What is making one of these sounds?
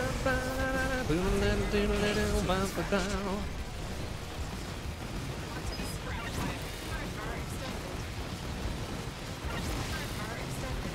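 Video game blasts and explosions crackle.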